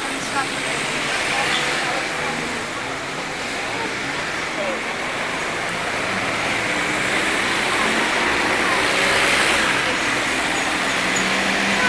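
A small road train's engine hums as it rolls slowly past.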